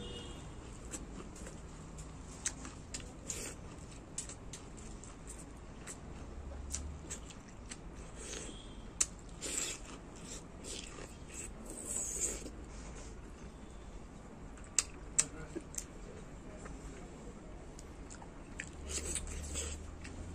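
A man chews food noisily, close by.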